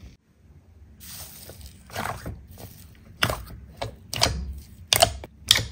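A hand squishes and squeezes thick, wet slime, making sticky popping and crackling sounds.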